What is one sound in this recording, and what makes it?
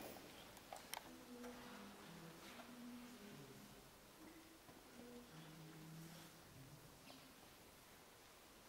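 A mixed choir sings softly in a large echoing hall.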